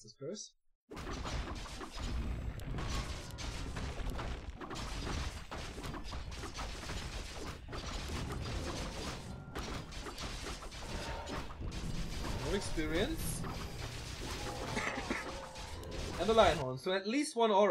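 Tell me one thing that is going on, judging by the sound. Swords clash and spells burst in a busy battle.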